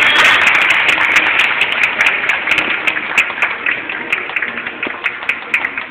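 A crowd applauds in a large echoing hall, the clapping slowly fading.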